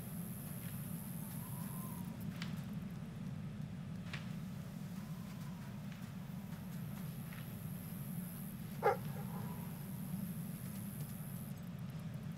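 Footsteps pad softly over sand and stone.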